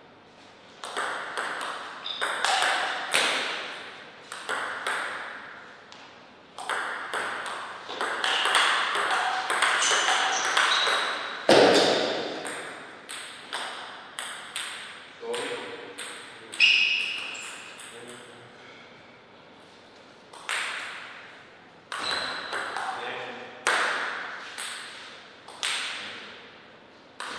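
A ping-pong ball clicks sharply back and forth off paddles and a table, echoing in a reverberant hall.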